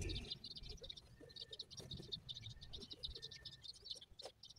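Tools clink faintly against metal in a car's engine.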